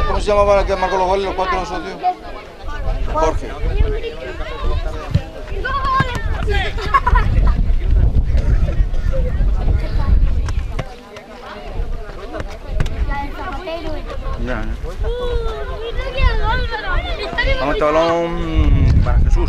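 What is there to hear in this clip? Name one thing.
Adults on the sidelines shout and cheer.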